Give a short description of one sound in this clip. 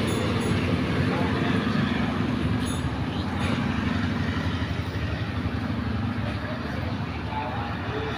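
Steel wheels clatter over rail joints.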